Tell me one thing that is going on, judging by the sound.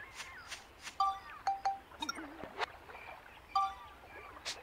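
Short electronic menu beeps chime.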